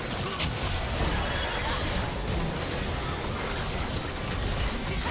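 Magic spells crackle and burst in a video game battle.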